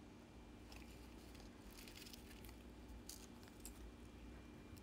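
A plastic sticker sheet crinkles softly.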